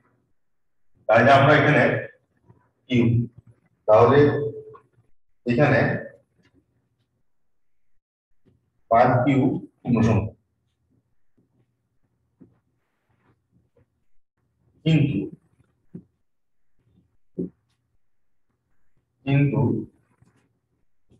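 A man speaks in short, calm phrases with long pauses between them.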